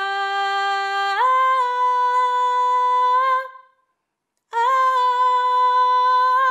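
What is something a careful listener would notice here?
A woman sings long, steady notes close by.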